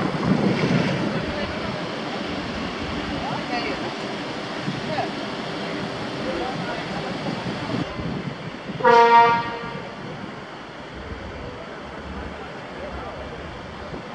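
Tractor engines idle and rumble nearby.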